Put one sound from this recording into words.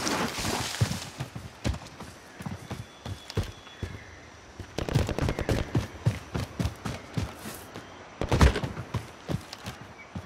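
Footsteps thud and rustle quickly through grass.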